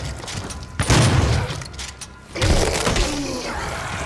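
Bodies burst with wet, squelching splatters.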